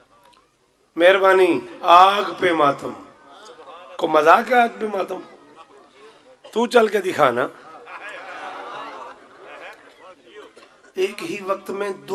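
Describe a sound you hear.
A man chants loudly and with feeling through a loudspeaker, in a large echoing space.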